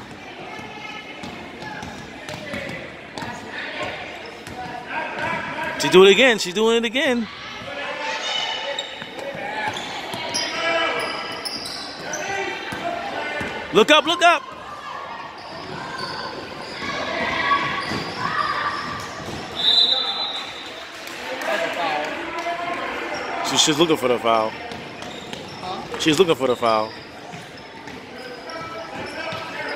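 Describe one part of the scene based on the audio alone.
Spectators chatter and shout in a large echoing gym.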